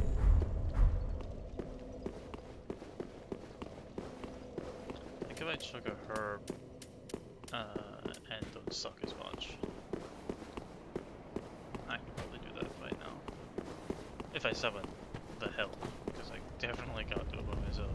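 Armoured footsteps clank on stone steps.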